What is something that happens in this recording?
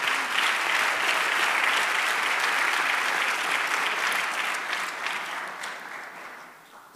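An audience applauds in a large echoing hall, then the applause fades away.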